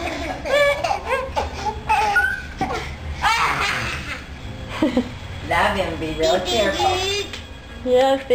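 A toddler babbles nearby.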